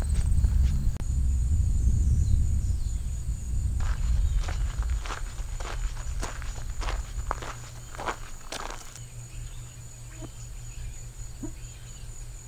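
Wind rumbles outdoors across an open field.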